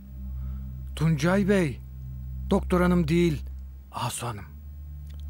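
A middle-aged man speaks firmly.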